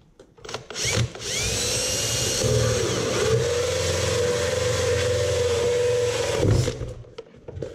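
A cordless drill whirs steadily, then stops.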